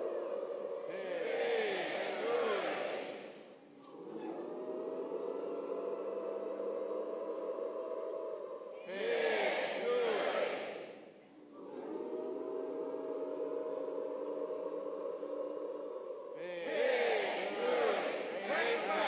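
A large crowd breaks into loud shouts and cheers between the calls.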